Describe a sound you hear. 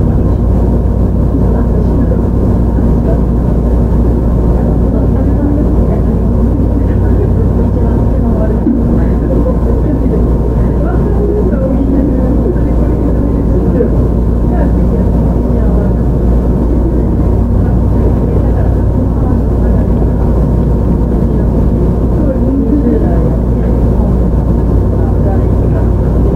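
An electric train rumbles along the tracks.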